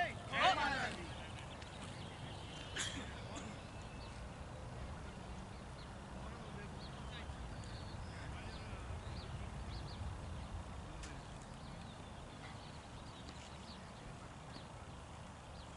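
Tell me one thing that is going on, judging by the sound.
Men talk faintly at a distance.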